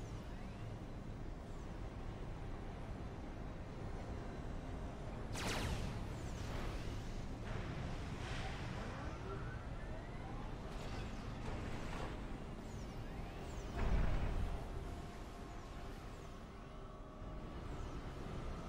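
Game weapons fire in quick bursts.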